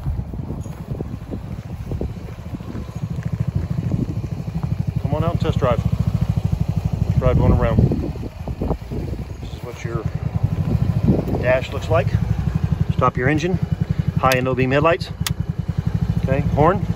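A small engine idles with a steady, rapid putter.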